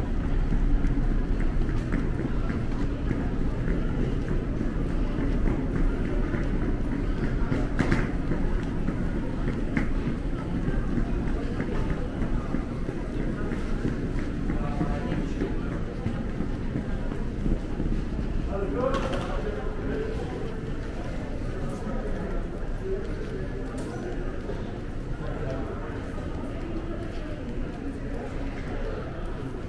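A low murmur of people fills the echoing hall.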